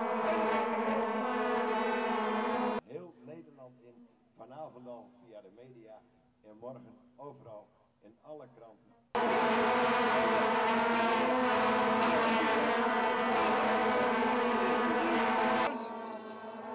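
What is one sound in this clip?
A large crowd blows plastic horns in a loud, steady drone.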